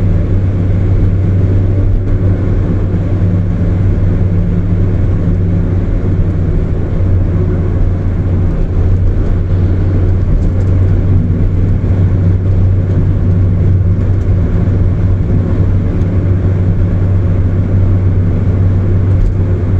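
Tyres roar on the road at high speed.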